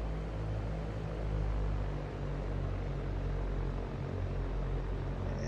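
A small propeller plane's engine drones steadily at a low idle.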